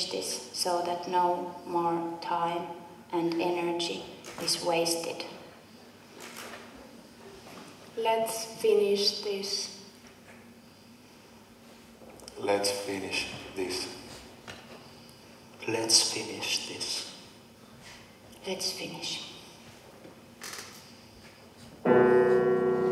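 A young woman speaks clearly and with expression in a large echoing hall.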